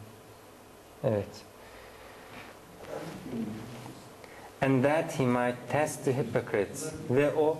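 A man speaks calmly and closely into a microphone, pausing between phrases.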